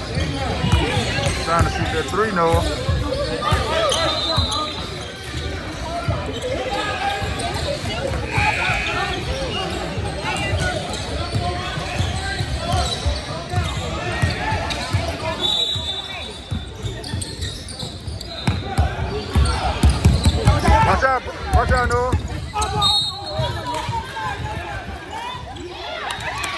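A crowd of young men and boys shout and chatter across an echoing hall.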